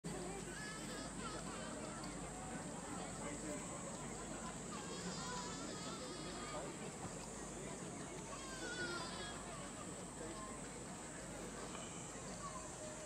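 Children chatter and call out outdoors nearby.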